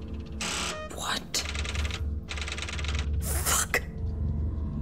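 A computer terminal chirps and beeps in quick bursts.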